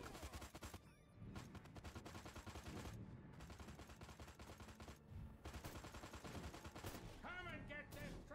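Explosions thud and rumble in a video game.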